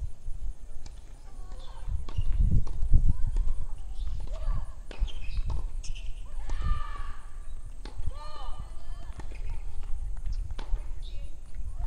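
Women talk at a distance outdoors.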